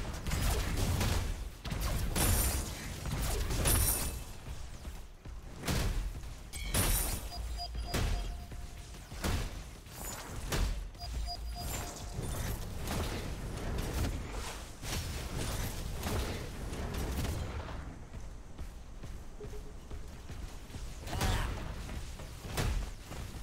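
Gunfire and blasts crackle in a video game.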